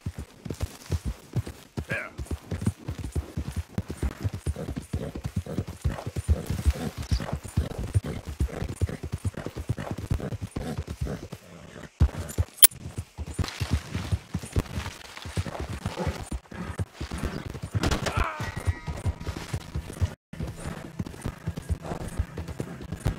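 A horse gallops steadily, hooves pounding on the ground.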